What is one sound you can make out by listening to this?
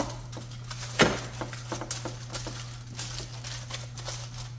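A metal baking pan knocks and scrapes on a glass stovetop.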